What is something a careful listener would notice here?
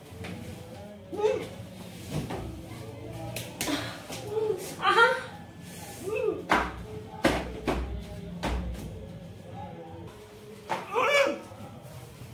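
A woman laughs loudly during a playful struggle.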